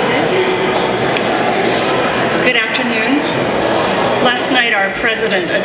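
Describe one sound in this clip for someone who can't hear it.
An elderly woman speaks calmly into a microphone in an echoing hall.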